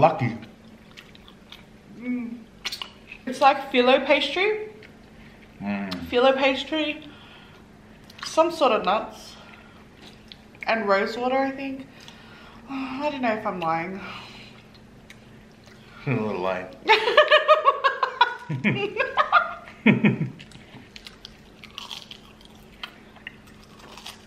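Crunchy food crackles as people bite and chew.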